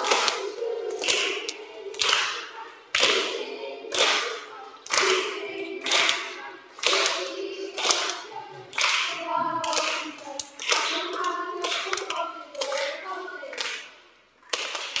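Children clap their hands in rhythm.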